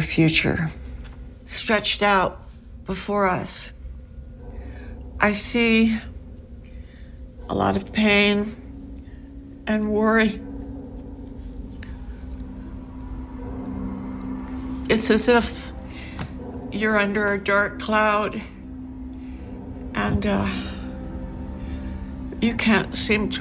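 An elderly woman speaks close by, in an upset, strained voice.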